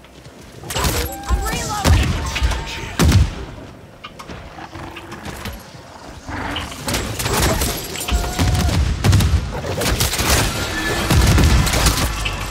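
A young woman talks through a microphone with animation.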